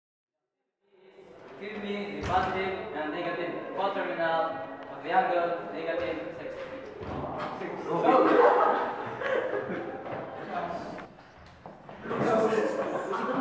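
A young man asks a question aloud.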